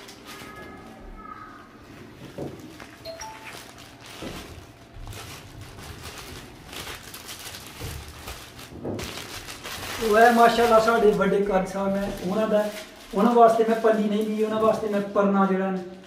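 Plastic wrapping and cloth bags rustle and crinkle.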